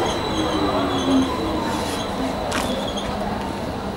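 A train rolls slowly along the tracks and comes to a stop.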